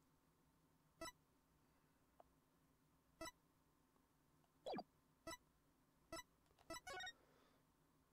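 Short soft electronic blips sound as menu items are picked one after another.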